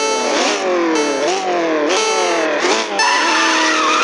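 A car engine revs up sharply several times.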